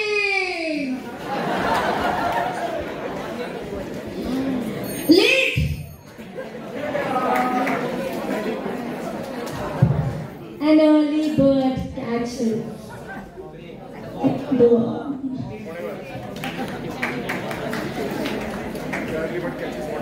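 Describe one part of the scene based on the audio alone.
Young people speak and sing with animation through microphones in a large echoing hall.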